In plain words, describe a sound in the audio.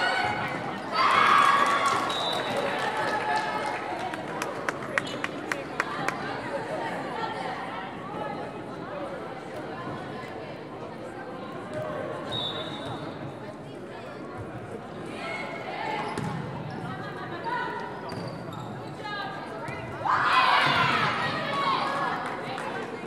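A crowd cheers and claps after a point.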